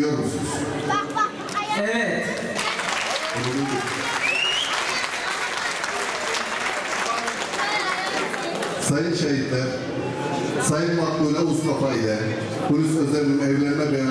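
An elderly man speaks into a microphone, heard through loudspeakers.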